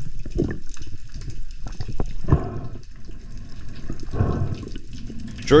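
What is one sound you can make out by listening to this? A diver breathes heavily through a snorkel underwater.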